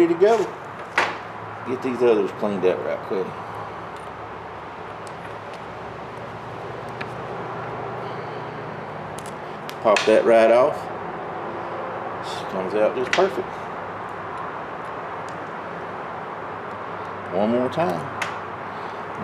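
Metal pliers click and clank against metal.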